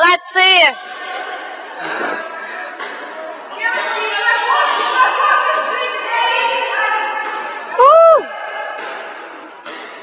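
A basketball bounces on a wooden court in an echoing gym.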